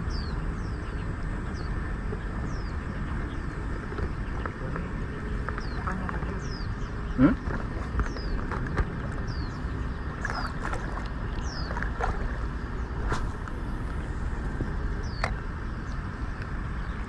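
A fishing reel whirs and clicks as it is wound.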